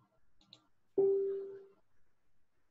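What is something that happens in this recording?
A short notification chime sounds from a computer.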